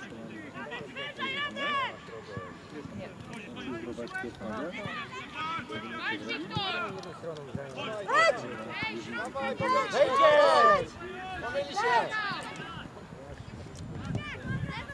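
Young boys shout and call out to each other across an open field.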